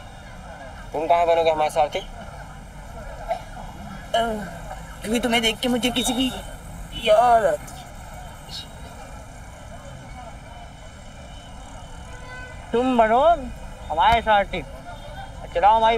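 A young man speaks in a cheeky, animated voice nearby.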